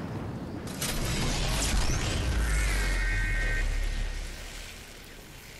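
Wind rushes past a glider in flight.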